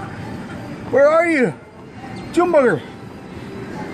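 A middle-aged man groans loudly in strained bursts.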